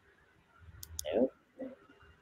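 A woman speaks briefly through an online call.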